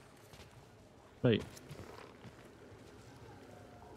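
Boots land heavily on rocky ground.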